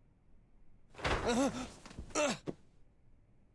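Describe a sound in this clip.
A young man speaks in surprise close by.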